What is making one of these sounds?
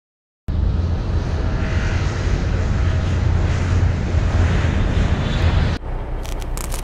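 Propeller plane engines drone loudly overhead.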